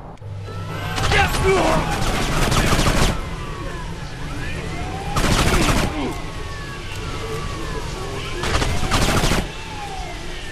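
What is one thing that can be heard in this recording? Rapid bursts of automatic gunfire crack loudly.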